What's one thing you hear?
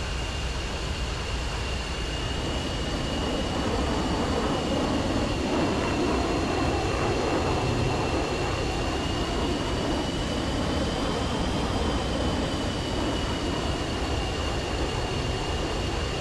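A jet engine whines and roars steadily.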